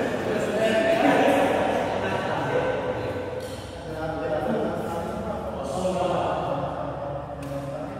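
Young men talk and call out in a large echoing hall.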